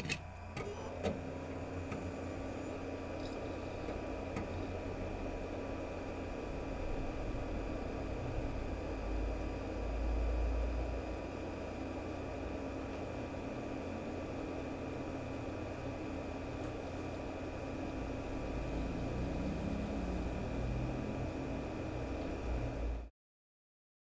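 A small cooling fan starts up and whirs with a steady hum.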